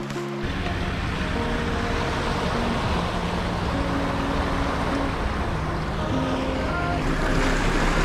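A pickup truck splashes through a shallow stream.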